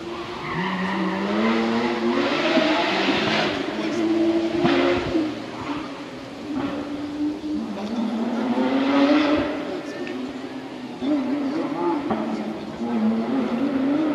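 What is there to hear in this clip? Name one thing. A crowd of spectators chatters and calls out across an open hillside.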